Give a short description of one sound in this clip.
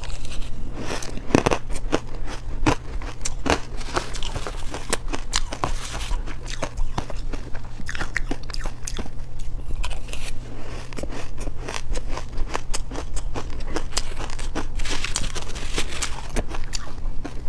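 A spoon scrapes through crushed ice.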